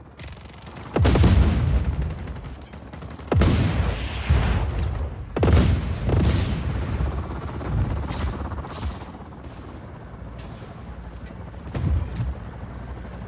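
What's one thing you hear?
Explosions boom loudly, one after another.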